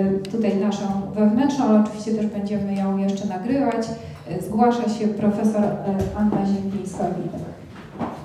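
A young woman speaks calmly into a microphone over loudspeakers in an echoing hall.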